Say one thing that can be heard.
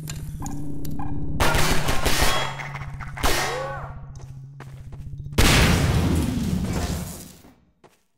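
Pistol shots ring out in quick succession.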